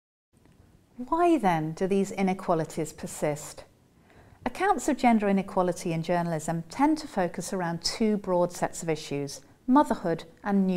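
A middle-aged woman speaks calmly and clearly into a close microphone.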